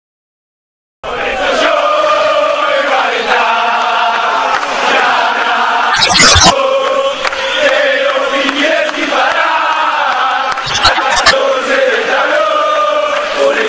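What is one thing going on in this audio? A large crowd of fans chants and cheers outdoors.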